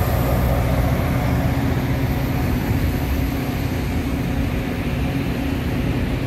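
Train wheels clack and squeal on the track.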